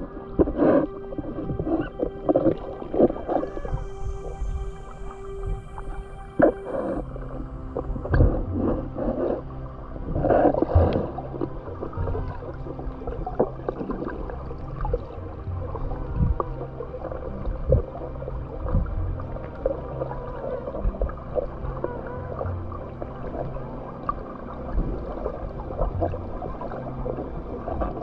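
Water sloshes and bubbles around an underwater microphone, heard muffled.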